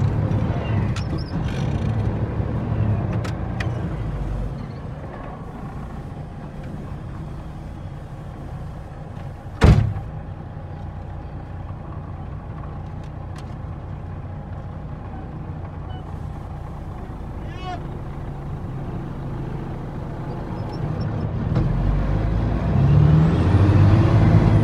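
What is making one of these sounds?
A vehicle engine rumbles low and steady.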